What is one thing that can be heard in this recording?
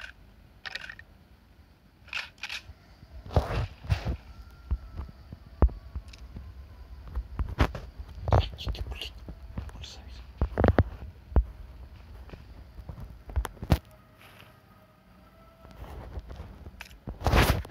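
Short clicks and clatters sound as items are picked up.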